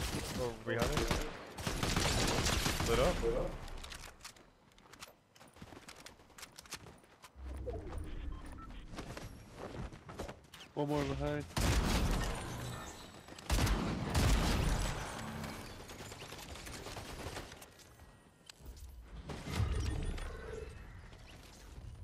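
Guns fire in rapid bursts of loud shots.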